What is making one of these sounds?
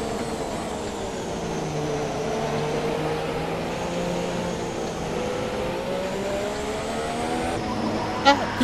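A racing car engine whines steadily, rising and falling in pitch.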